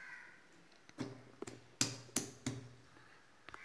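A stone pestle pounds garlic in a stone mortar with dull knocks.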